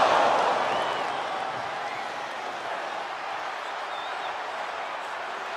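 A large crowd cheers and roars in a big echoing arena, loudest at first and then settling.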